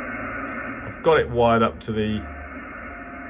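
A radio whistles with a quick rising and falling tuning tone.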